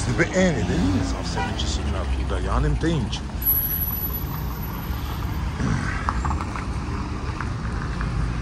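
Car engines idle and rumble in busy street traffic outdoors.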